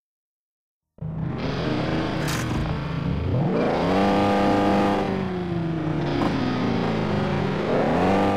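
Racing car engines idle and rev loudly, rising and falling in pitch.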